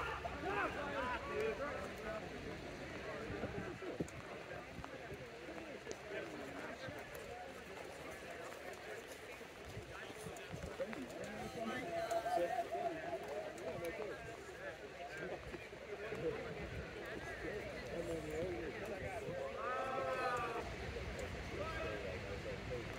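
Players shout and call out across an open field during a match.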